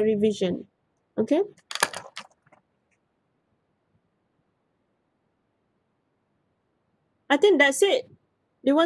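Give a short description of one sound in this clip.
A young woman speaks calmly through a microphone, with pauses.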